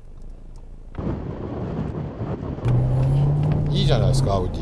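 A car engine drones as a car drives on a wet track.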